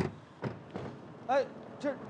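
Footsteps hurry across pavement.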